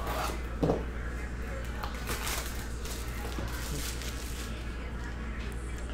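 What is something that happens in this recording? Plastic wrapping crinkles as a box is opened.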